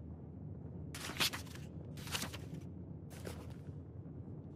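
Paper rustles as a notebook page turns.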